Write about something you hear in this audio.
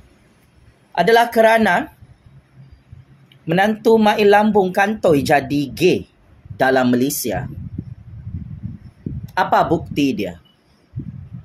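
A man speaks with animation close to a phone microphone, in short bursts with pauses.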